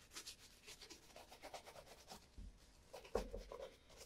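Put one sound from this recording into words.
A shoe knocks down onto a wooden table.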